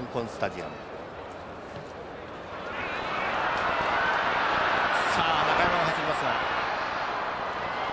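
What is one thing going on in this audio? A stadium crowd murmurs and roars, swelling louder partway through.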